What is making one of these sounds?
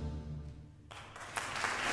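An orchestra holds a final chord, then stops.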